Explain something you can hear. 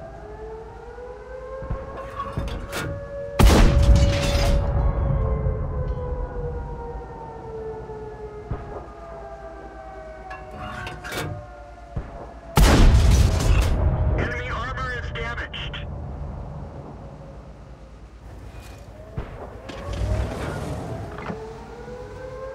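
A tank engine drones and rises and falls in pitch.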